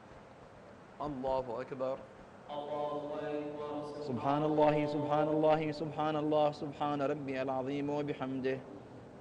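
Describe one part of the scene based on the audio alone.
A man chants loudly through a loudspeaker in a large echoing hall.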